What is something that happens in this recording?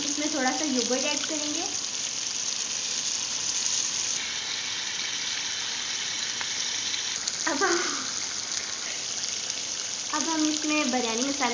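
Curry sizzles in a metal pan.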